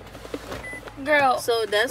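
A second young woman talks loudly close by.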